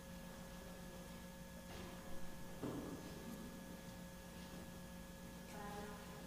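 Footsteps shuffle softly on a hard floor in a large echoing hall.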